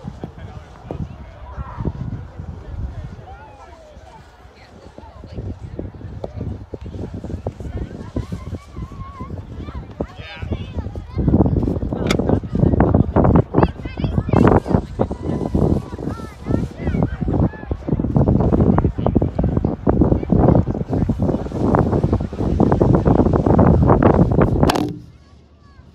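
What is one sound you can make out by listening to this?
Distant voices of children and adults call out across open ice.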